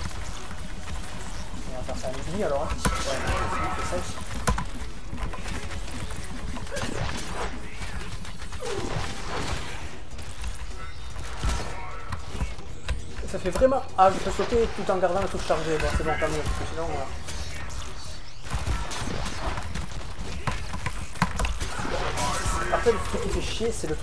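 Sword slashes and energy blasts whoosh and crackle.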